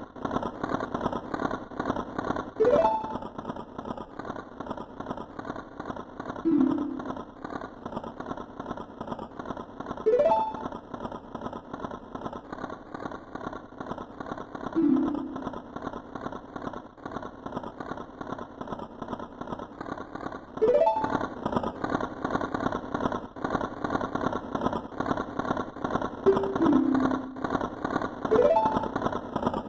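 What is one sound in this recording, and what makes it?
Soft, mysterious game music plays steadily.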